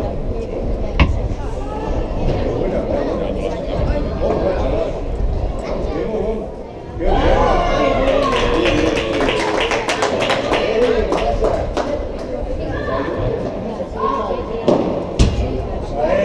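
Padel rackets hit a ball with sharp pops.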